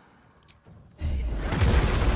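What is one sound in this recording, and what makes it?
A fiery magical blast bursts with a loud roar.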